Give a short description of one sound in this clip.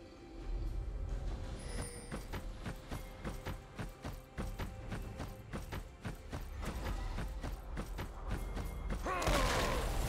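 Rapid attack hits strike again and again.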